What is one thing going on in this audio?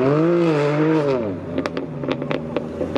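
Engine exhausts pop and crackle as cars accelerate.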